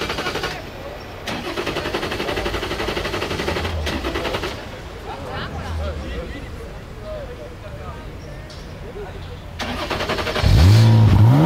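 A race car engine idles with a deep, lumpy burble.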